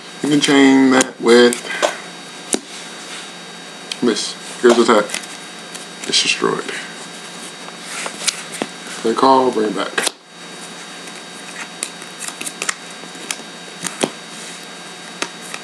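Playing cards slide and tap on a soft mat.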